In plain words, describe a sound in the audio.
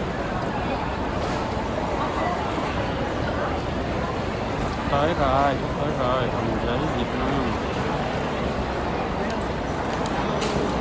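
Suitcase wheels roll over a tiled floor.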